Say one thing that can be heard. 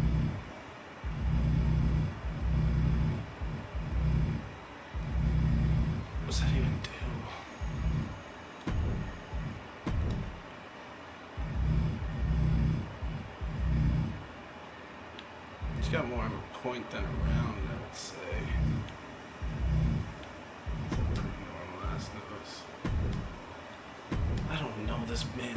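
A man talks casually into a close microphone, in a low voice.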